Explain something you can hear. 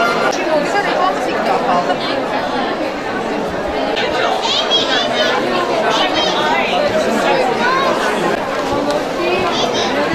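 A crowd of people chatter in a busy room.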